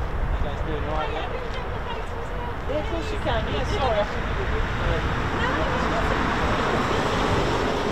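Vehicle engines hum faintly in the distance.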